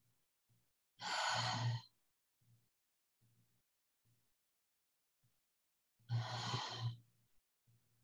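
A woman breathes out slowly and audibly.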